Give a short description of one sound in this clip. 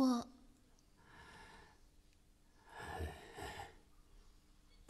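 An elderly man speaks quietly, close by.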